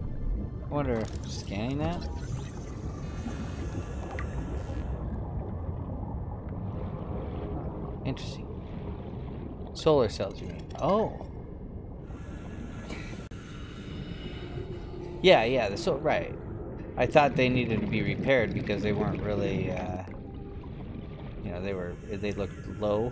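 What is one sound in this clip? A low underwater rumble drones steadily.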